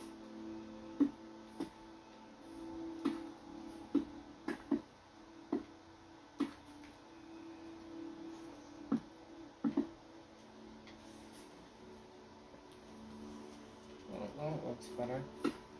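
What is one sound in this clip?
Stone blocks are placed with short, dull knocks in an uneven rhythm.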